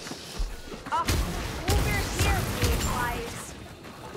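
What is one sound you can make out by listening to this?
A gun fires with a loud blast.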